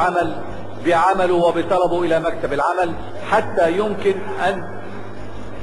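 An elderly man speaks forcefully into a microphone in a large echoing hall.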